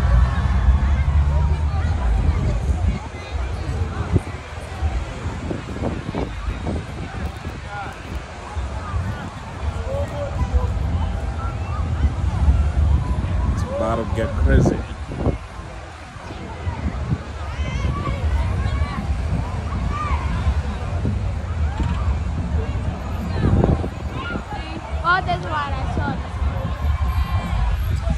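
A crowd of young people talks and shouts at a distance outdoors.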